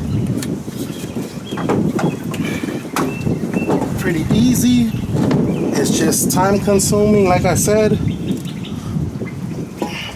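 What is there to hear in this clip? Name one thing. Metal parts clunk and scrape as a radiator is worked loose and lifted out.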